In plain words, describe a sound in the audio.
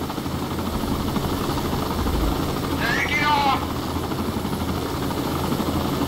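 A helicopter's rotor thumps and roars steadily.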